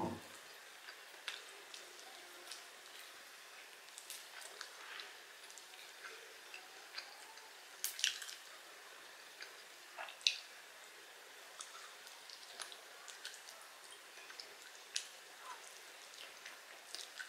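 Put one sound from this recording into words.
Meat tears from a bone with wet, sticky sounds.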